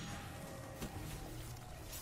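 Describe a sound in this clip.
Electric energy crackles and zaps.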